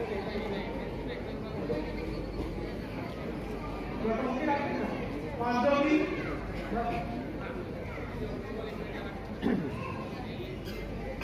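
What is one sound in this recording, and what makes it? Several men talk with one another nearby.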